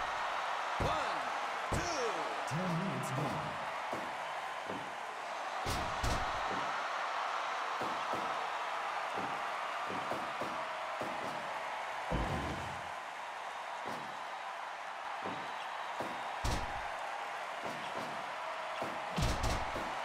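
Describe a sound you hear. Bodies slam onto a wrestling mat with heavy thuds.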